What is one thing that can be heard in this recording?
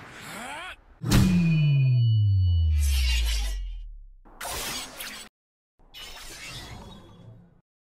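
Metal blades clash and ring.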